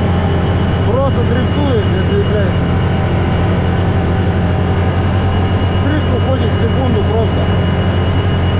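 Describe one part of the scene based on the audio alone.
An engine drones loudly and steadily close by.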